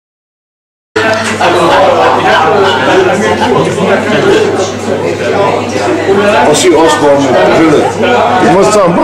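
A crowd of people chat and laugh nearby in a busy room.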